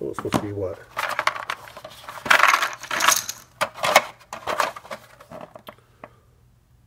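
A cardboard box lid slides and scrapes.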